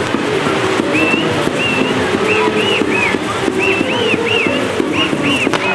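Spinning fireworks whistle in short, rising squeals.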